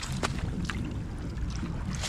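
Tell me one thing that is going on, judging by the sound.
Water splashes softly as a hand dips into a shallow pool.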